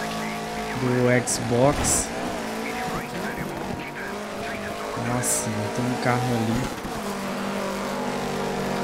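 A rally car engine revs hard and shifts gears.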